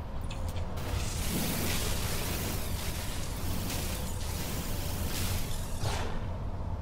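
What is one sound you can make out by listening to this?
A laser beam hisses steadily as it fires.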